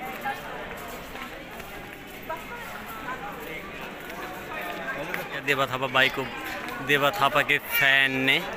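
A crowd of young men chatters nearby outdoors.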